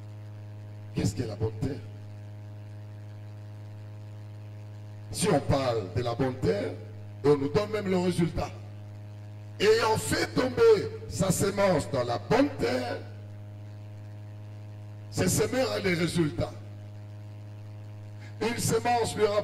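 A man speaks through a microphone in short, emphatic bursts with pauses between them.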